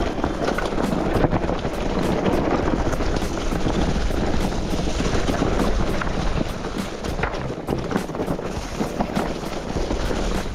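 Bicycle tyres roll and crunch over dry leaves and dirt on a bumpy trail.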